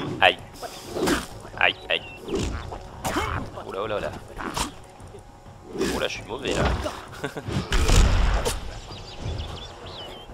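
A heavy weapon swooshes through the air.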